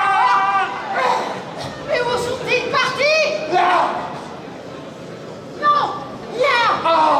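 A man speaks loudly and with animation through loudspeakers.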